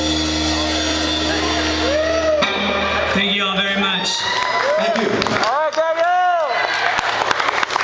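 Electric guitars play loudly through amplifiers.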